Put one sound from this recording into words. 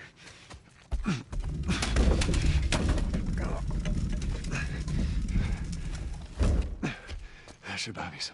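A heavy cart scrapes and rumbles as it is pushed across a hard floor.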